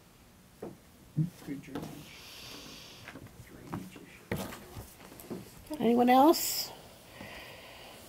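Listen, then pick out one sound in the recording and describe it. Papers rustle and shuffle on a table.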